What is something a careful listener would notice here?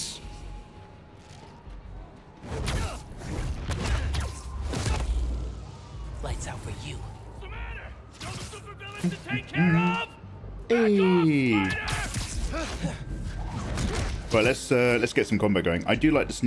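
Game sound effects whoosh and thud as a character swings and fights.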